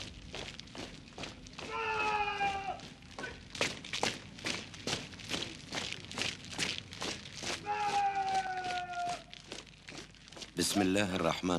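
Many boots stamp on pavement in a steady marching beat.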